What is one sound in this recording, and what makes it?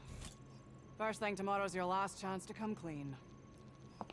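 A woman speaks sternly.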